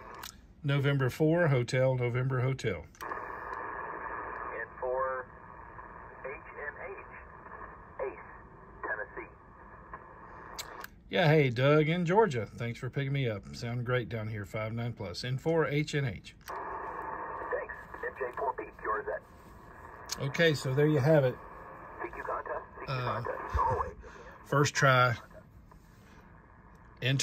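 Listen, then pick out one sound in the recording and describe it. A radio receiver hisses with static through a small loudspeaker.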